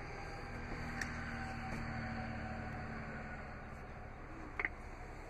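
A car seat latch clicks.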